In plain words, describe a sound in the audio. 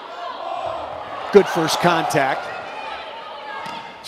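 A volleyball smacks off a player's arm.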